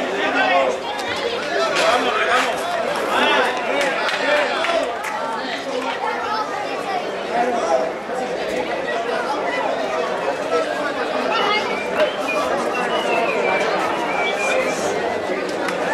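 A large crowd of men and women shouts and chatters outdoors.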